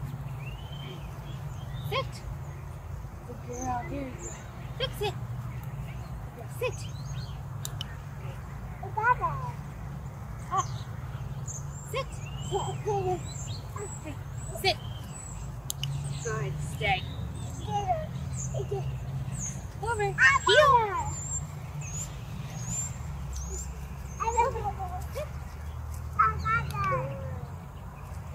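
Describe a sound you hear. A young woman talks to a dog in a calm, coaxing voice outdoors.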